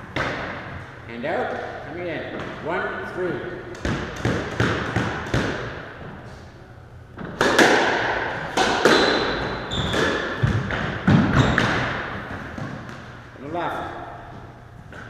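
A squash ball smacks against the walls in a fast rally, echoing in a hard-walled court.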